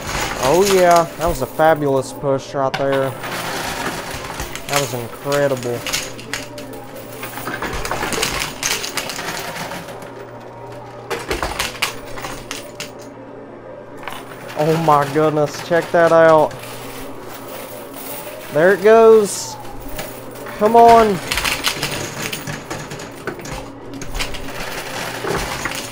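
Coins clink and rattle as they shift and spill inside a coin machine.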